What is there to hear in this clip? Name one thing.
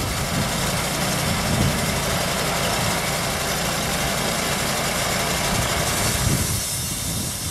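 A band saw whines as it cuts through a log.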